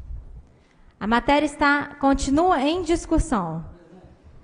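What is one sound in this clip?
A young woman speaks loudly and emphatically into a microphone.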